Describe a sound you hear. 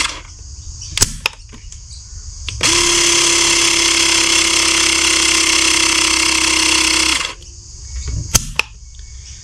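Plastic parts of a toy click sharply.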